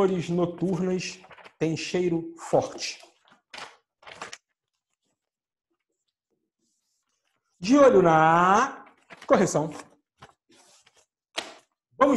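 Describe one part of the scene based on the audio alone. Paper rustles as a man handles a sheet.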